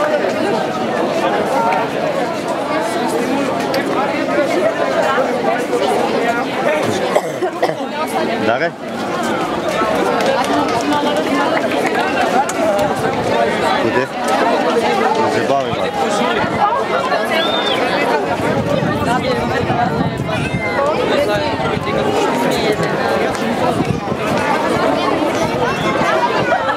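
A large crowd of young people chatters and talks outdoors.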